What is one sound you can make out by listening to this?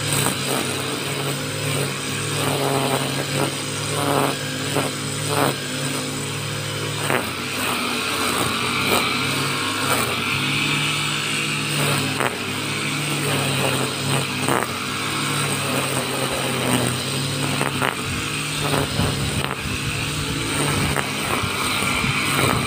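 A string trimmer engine buzzes steadily close by.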